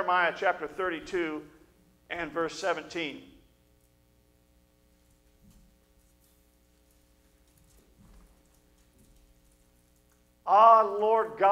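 A middle-aged man speaks with animation through a microphone, with pauses.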